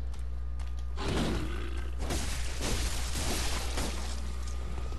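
A blade slashes and strikes flesh in quick bursts.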